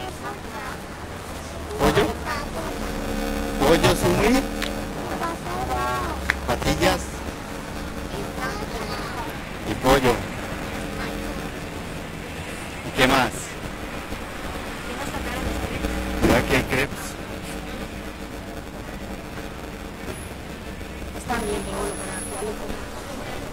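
A young woman talks softly, close by.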